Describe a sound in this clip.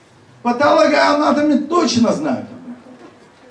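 A man speaks loudly and with animation through a microphone in a reverberant hall.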